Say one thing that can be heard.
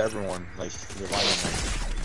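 A pickaxe swings and strikes a wall with a thud.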